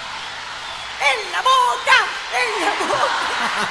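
A woman shouts with animation through a microphone.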